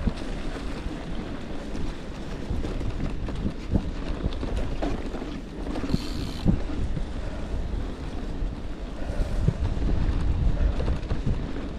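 Bicycle parts rattle and clatter over bumps.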